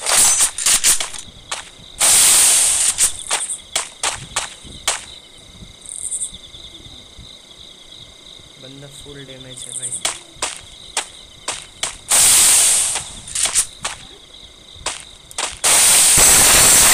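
Footsteps thud quickly on pavement.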